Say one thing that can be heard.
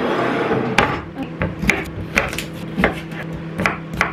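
A knife chops on a wooden cutting board.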